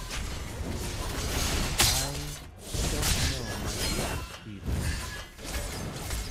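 Video game combat effects of magic blasts and strikes burst out in quick succession.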